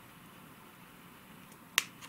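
Scissors snip through a root.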